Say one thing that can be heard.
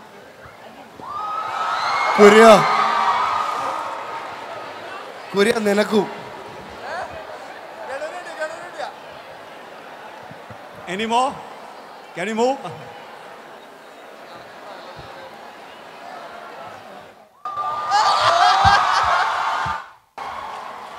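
A crowd cheers and screams loudly outdoors.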